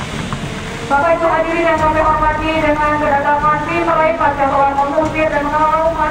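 Motorcycle engines rev and roar as the motorcycles ride off.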